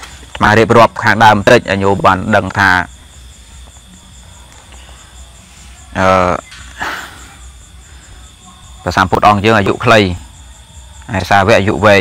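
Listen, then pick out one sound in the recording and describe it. A man speaks calmly and close up, in short bursts with pauses.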